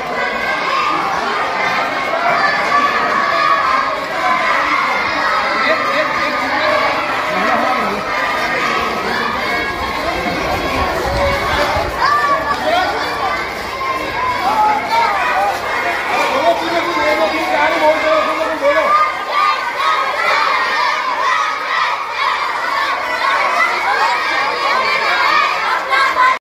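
A crowd of children and young people chatter and call out outdoors.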